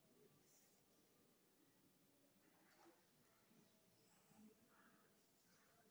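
A pencil scratches softly along paper.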